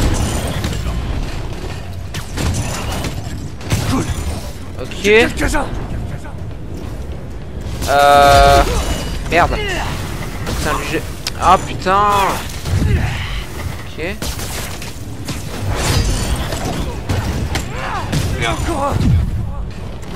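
Heavy punches and kicks land with thuds.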